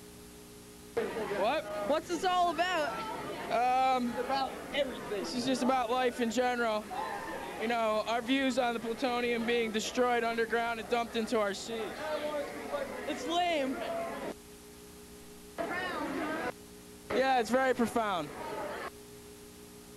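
Young people talk and chatter nearby.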